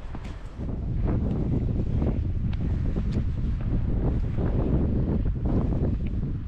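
Boots crunch on loose rock.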